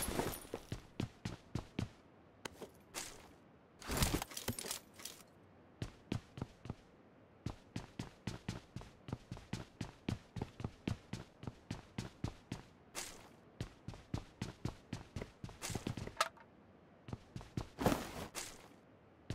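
Quick footsteps thud across a wooden floor.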